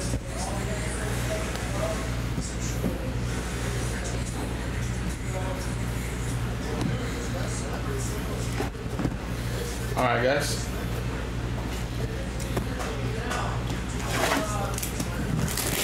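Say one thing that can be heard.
Cardboard boxes slide and tap on a table.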